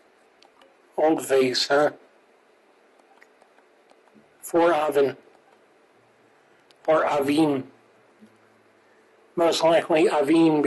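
A man speaks into a microphone in short bursts, casually.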